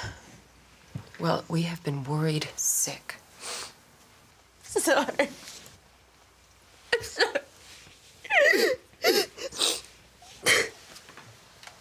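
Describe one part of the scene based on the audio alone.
A young woman sobs and wails in distress.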